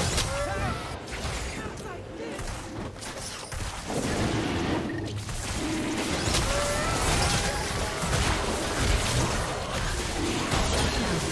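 Spell effects whoosh and crackle in a fight.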